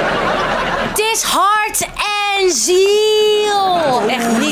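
A woman shouts excitedly.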